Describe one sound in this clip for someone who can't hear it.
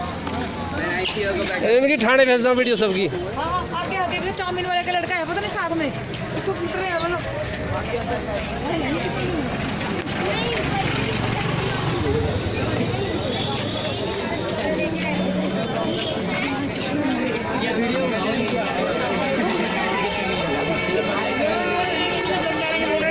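A crowd of young people chatters and shouts nearby outdoors.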